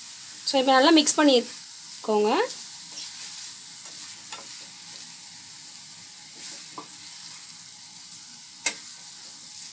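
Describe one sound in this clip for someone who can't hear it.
A wooden spatula scrapes and stirs vegetables in a steel pan.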